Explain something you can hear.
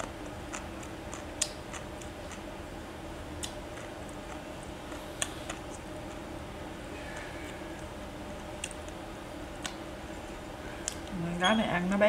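Food rustles and clicks softly as a woman picks at it by hand, close by.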